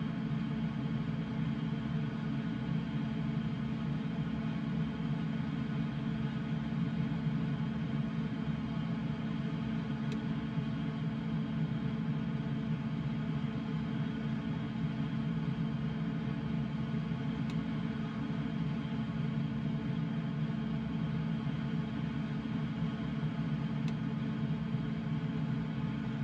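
Wind rushes past an aircraft's cockpit.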